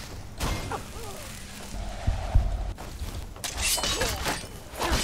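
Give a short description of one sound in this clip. A magic spell crackles and hisses.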